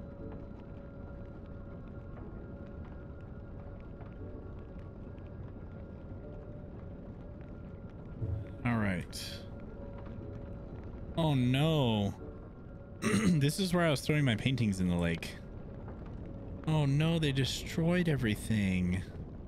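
A large fire roars and crackles steadily.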